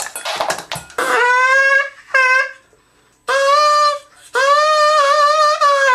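A young man sings long, loud notes close by.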